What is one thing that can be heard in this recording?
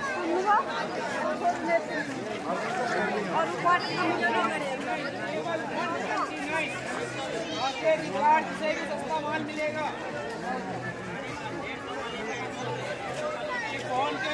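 A crowd of men and women chatter loudly all at once outdoors.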